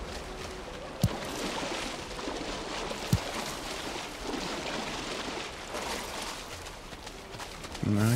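Water splashes as someone wades through shallows.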